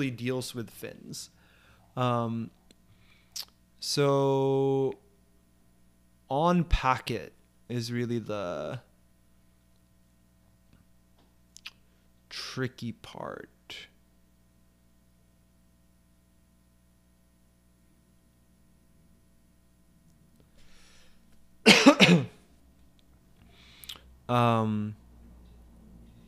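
A man speaks calmly and thinks aloud into a close microphone, in short bursts with pauses.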